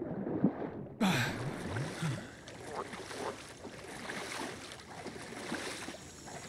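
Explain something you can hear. Water splashes and laps as a swimmer breaks the surface and strokes along.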